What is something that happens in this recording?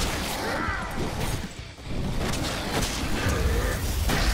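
Wooden crates smash and splinter apart.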